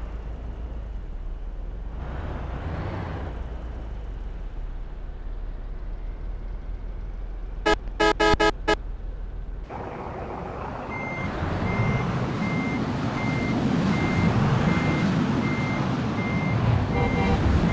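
A bus engine rumbles steadily, growing louder as the bus pulls away.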